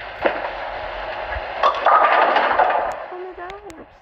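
Bowling pins clatter as a ball crashes into them.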